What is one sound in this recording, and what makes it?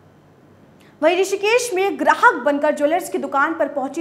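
A woman reads out the news calmly through a microphone.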